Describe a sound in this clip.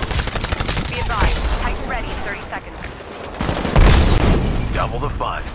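Explosions boom with deep rumbles.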